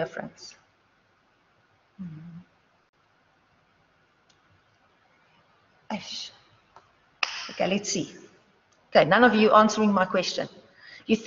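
A young woman speaks calmly, heard through a microphone.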